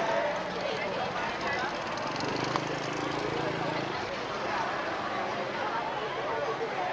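A crowd of men and women chatter and murmur outdoors.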